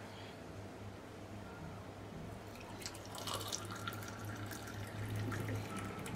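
Liquid pours through a metal strainer into a glass.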